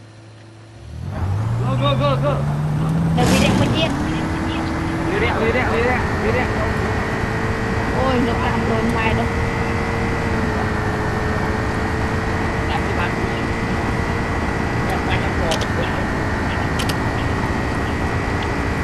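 A car engine speeds up, rising in pitch, then holds a steady drone.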